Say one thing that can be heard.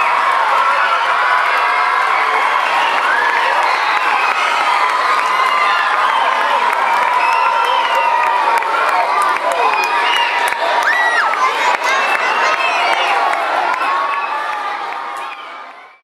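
A large crowd of children chatters and cheers loudly in an echoing hall.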